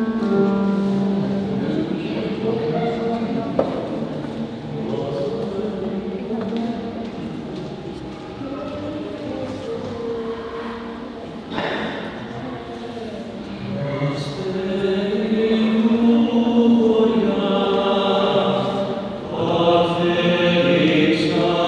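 A group of men sing together in harmony through loudspeakers in an echoing hall.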